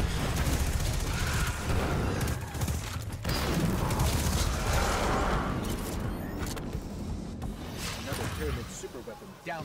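Rapid gunfire rattles loudly with booming blasts.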